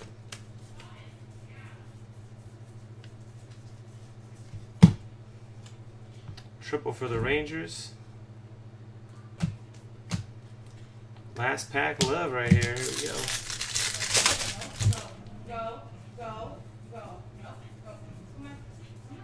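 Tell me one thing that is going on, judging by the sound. Trading cards rustle and flick as hands shuffle through them.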